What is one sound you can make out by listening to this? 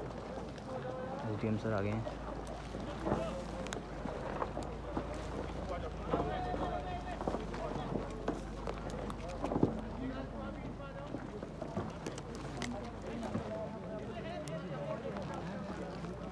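Several men talk among themselves nearby outdoors.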